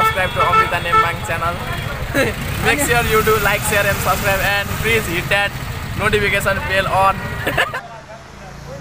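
A young man talks cheerfully and close by.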